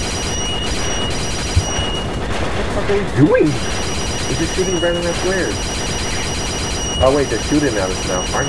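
Electronic game music plays steadily.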